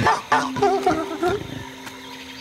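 A young boy talks with animation close to a microphone.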